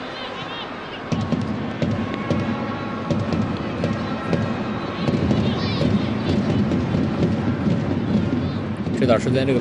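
A large stadium crowd murmurs and chants in the distance.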